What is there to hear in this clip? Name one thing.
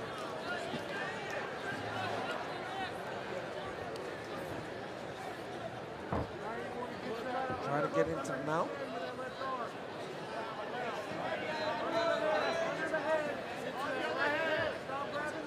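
A crowd shouts and cheers.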